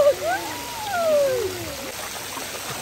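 A young girl speaks up close with a high, lively voice.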